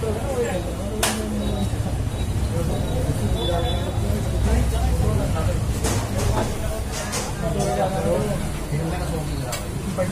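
A metal spatula clinks and scrapes on a flat iron griddle.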